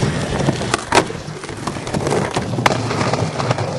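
A skateboard clacks sharply against the ground.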